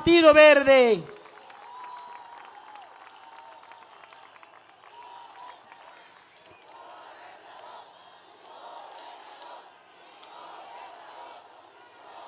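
A crowd cheers faintly in the distance.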